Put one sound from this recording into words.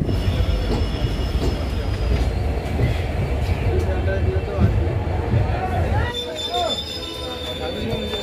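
A crowd of people chatters in a large echoing station.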